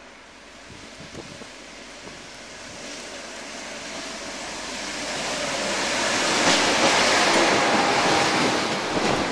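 A train approaches and rumbles past, growing louder.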